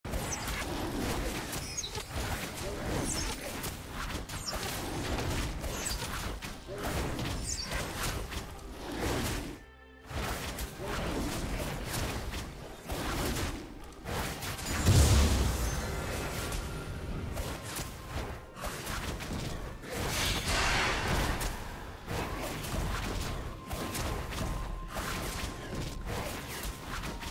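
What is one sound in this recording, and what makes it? Video game combat effects clash, whoosh and burst.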